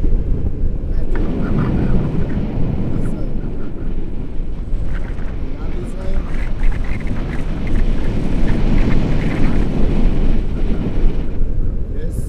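A young man talks with animation near a microphone.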